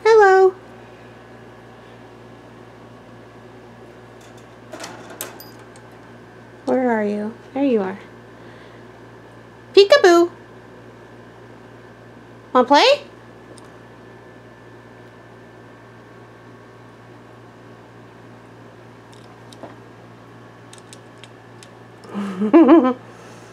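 A parakeet chirps and whistles in short bursts, close by.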